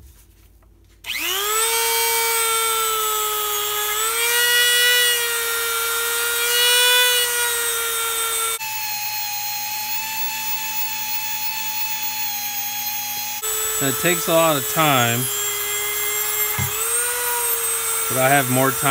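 A small rotary tool whirs with a high steady whine, its pitch shifting as it grinds metal.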